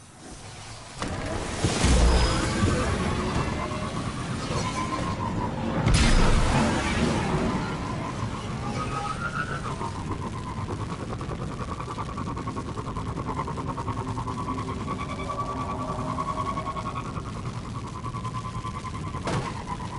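A jet engine roars steadily as a vehicle speeds along.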